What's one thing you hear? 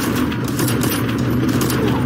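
A rifle fires rapid shots close by.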